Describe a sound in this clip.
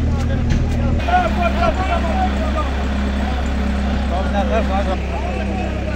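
Men talk with animation outdoors.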